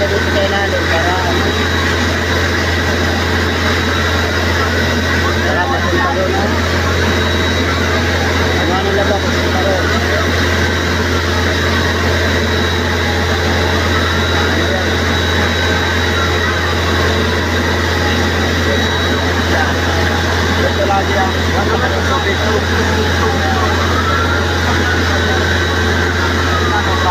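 A crowd of men and women shout and talk excitedly nearby.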